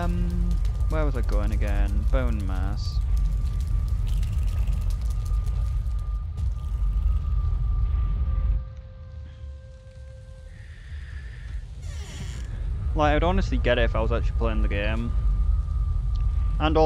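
A large fire roars with a deep, steady rumble.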